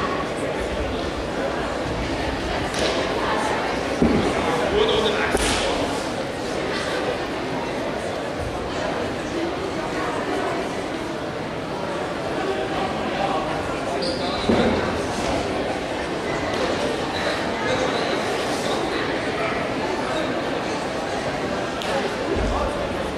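Spectators murmur and chatter in a large echoing hall.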